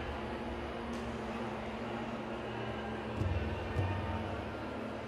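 A small gloved fist thumps a kicking pad.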